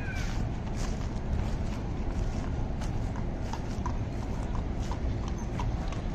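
Horse hooves clop on pavement.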